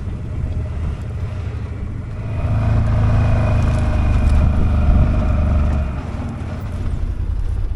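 Tyres roll over dry, crunchy dirt.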